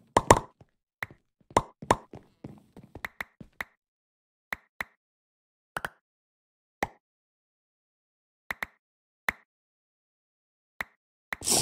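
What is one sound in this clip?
Short item pickup pops repeat at a steady pace.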